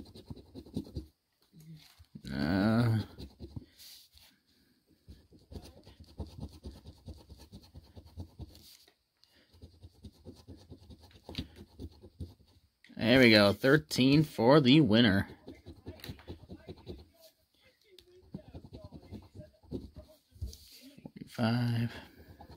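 A coin scrapes repeatedly across a scratch card.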